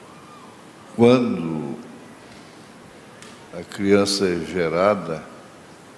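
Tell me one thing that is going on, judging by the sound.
A man preaches loudly through a microphone in a large echoing hall.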